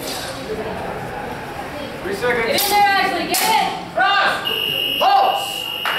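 Padded swords clack against each other.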